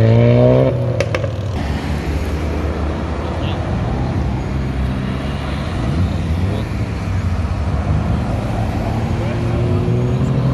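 Cars drive past steadily on a road outdoors.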